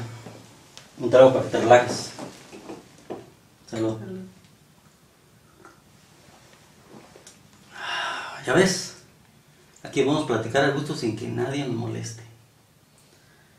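A middle-aged man talks nearby.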